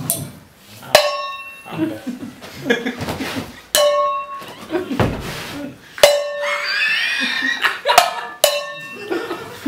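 Metal pots and pans clang with ringing tones when struck.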